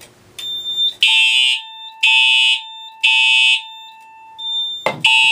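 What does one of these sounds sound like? A fire alarm horn blares in loud, repeated blasts.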